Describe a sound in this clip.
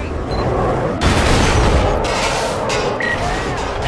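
A car crashes and scrapes against another car.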